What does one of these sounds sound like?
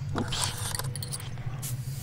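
A key rattles in a lock.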